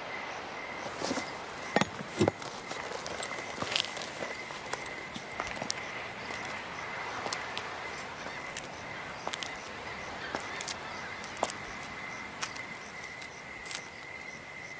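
Horses shift and stamp their hooves on stone.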